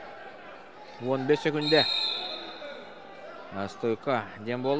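Spectators shout loudly in bursts of encouragement.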